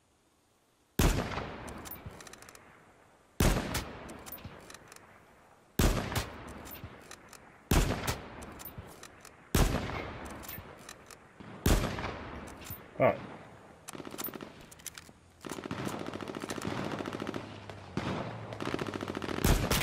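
A sniper rifle fires loud, echoing shots one after another.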